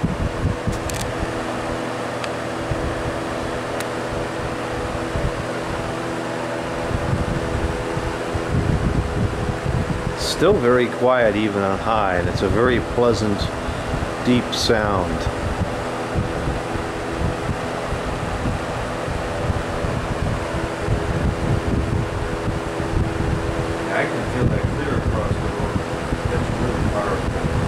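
A box fan hums steadily with a low whir.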